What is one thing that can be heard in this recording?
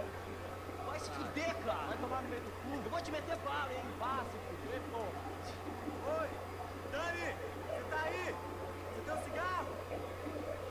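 A man talks casually in a low voice.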